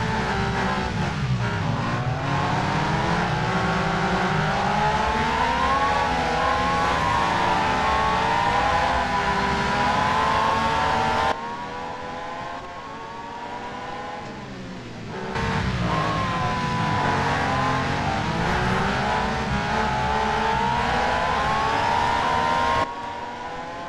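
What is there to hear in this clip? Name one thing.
A racing car engine screams loudly and shifts up through the gears close by.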